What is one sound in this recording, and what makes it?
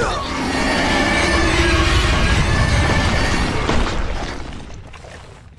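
A monster roars loudly and harshly.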